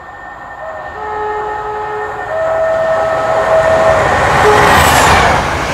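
A train horn sounds with long, steady blasts.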